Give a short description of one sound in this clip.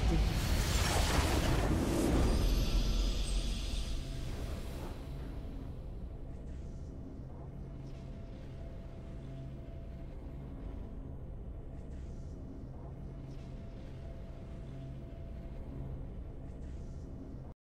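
A game victory fanfare swells and then quiets.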